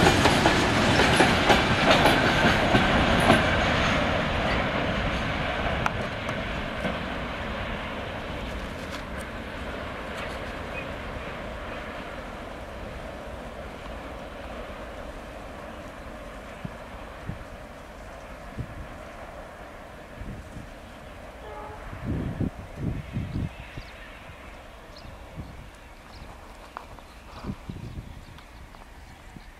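A train rumbles and clatters along the track, fading as it moves away.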